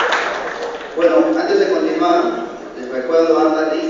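A man speaks through a loudspeaker in an echoing hall.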